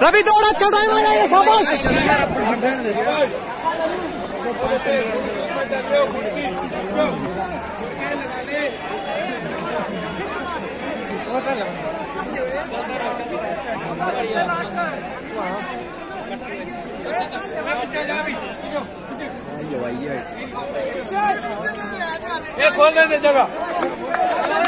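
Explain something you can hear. A crowd of young men chatters and shouts outdoors.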